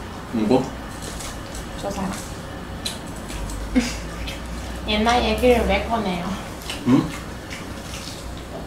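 Crispy fried food crunches.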